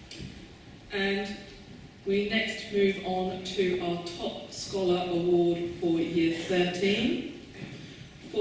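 An elderly woman speaks calmly through a microphone in a large hall.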